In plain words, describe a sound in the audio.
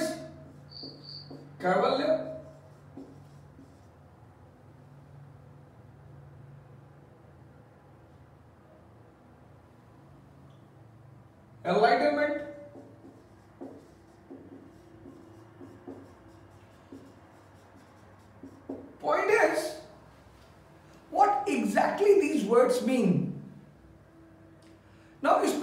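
A middle-aged man speaks calmly in short bursts, close by.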